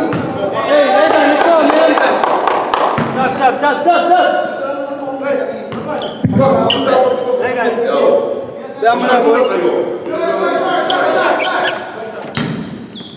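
Young men talk and call out loudly in an echoing gym.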